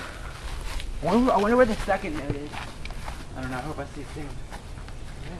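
A teenage boy talks nearby outdoors.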